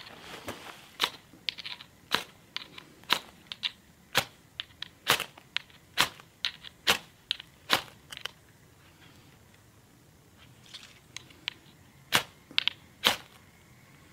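A metal rod scrapes sharply against a striker, again and again.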